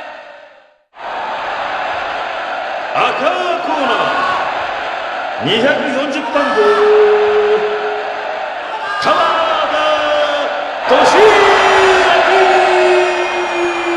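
A large crowd cheers and whistles in an echoing arena.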